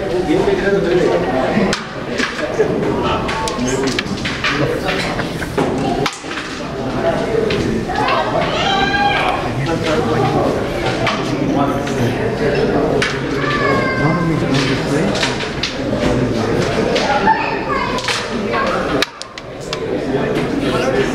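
Several young men talk and call out loudly nearby.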